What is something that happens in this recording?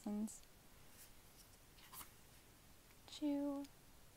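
A page of a book is turned, with a soft paper rustle.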